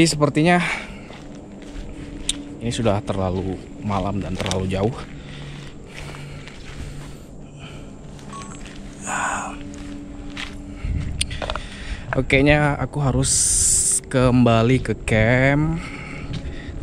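Footsteps crunch on dry pine needles and leaves.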